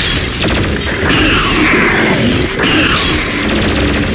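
A monster snarls and growls up close.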